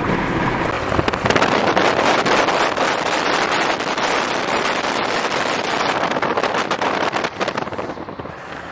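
Wind rushes loudly past an open car window at highway speed.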